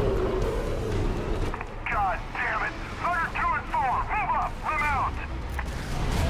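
A tank cannon fires with heavy blasts.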